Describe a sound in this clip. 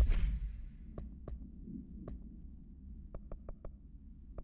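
Game menu selections click sharply.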